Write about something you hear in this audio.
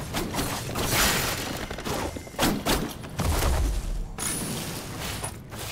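Heavy hits land with dull thuds and crunches.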